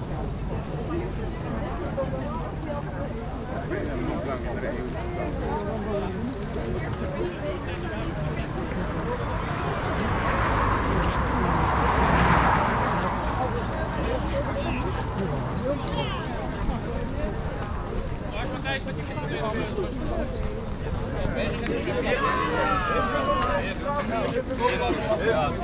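Many footsteps shuffle on pavement.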